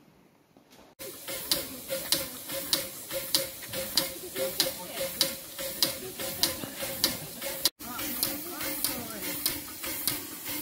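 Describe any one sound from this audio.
A steam locomotive chuffs in steady, quick beats.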